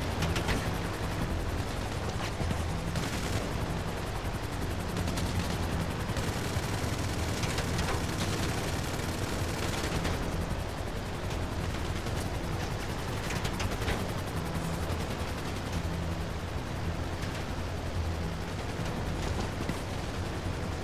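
A propeller plane's engines drone steadily overhead.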